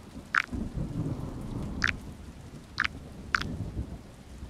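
Short bright clicks sound as puzzle tiles turn in a game.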